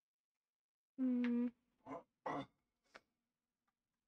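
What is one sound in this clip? A young woman speaks briefly and softly into a microphone.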